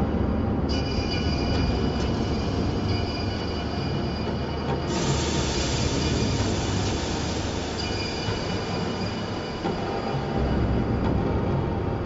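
Wind rumbles and buffets steadily while moving outdoors.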